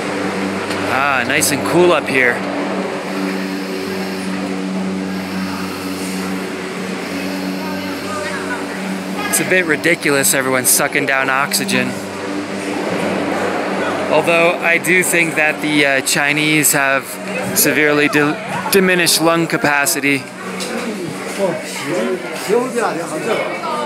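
A crowd of adults chatters nearby in an echoing hall.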